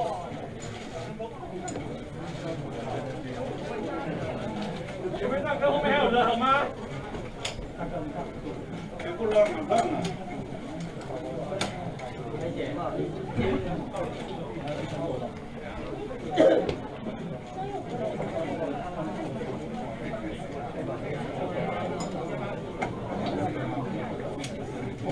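A crowd of men and women chatter and murmur nearby.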